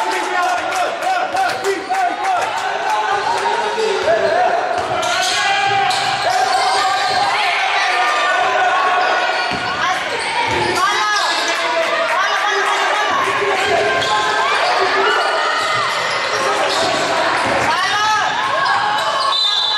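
Spectators chatter and shout in an echoing gym.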